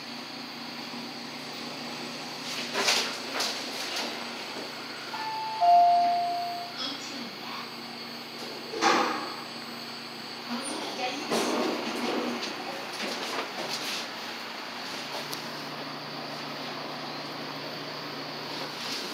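An elevator hums steadily.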